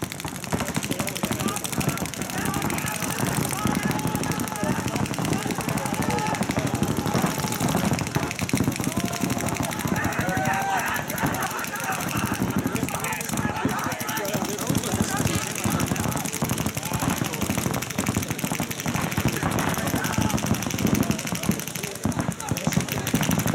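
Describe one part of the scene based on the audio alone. Paintball markers fire in rapid popping bursts nearby.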